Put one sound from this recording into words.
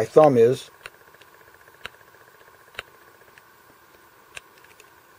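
A clip-on sunglass lens clicks against a glasses frame.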